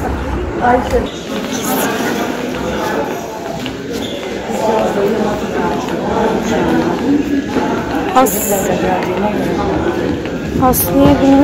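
Men and women chatter at a distance in an echoing hallway.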